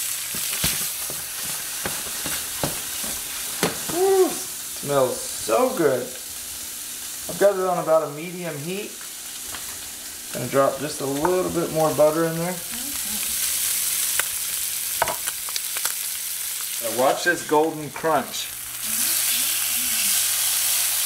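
Fish sizzles in a hot frying pan.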